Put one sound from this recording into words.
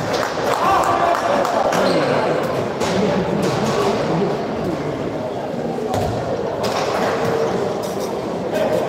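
Players' shoes squeak on the floor of a large echoing hall.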